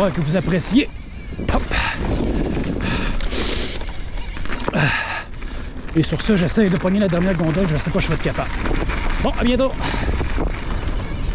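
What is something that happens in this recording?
Bicycle tyres rumble and crunch over dirt and gravel.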